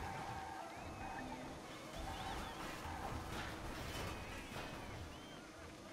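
A kart crashes with a loud crunching impact.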